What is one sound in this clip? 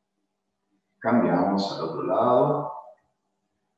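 A man speaks calmly into a microphone, as over an online call.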